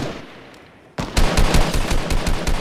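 A gun fires in rapid bursts, close by.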